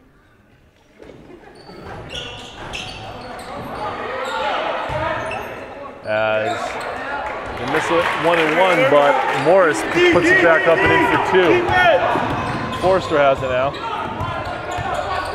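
A small crowd murmurs and cheers in an echoing gym.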